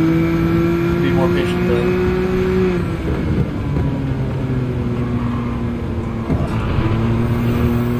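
A racing car engine roars at high revs, then drops in pitch as the car slows and gears down.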